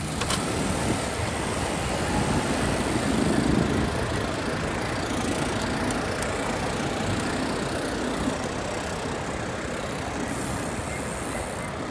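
Wind rushes steadily past while cycling outdoors.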